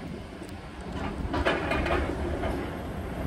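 Concrete crunches and cracks as a demolition grab tears at it.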